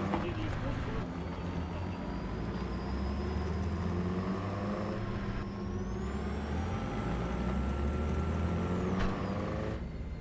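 A vehicle engine rumbles steadily and revs as it drives over rough ground.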